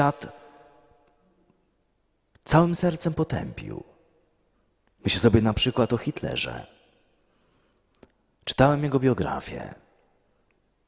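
A middle-aged man speaks calmly into a microphone in a large echoing room, in short phrases with pauses.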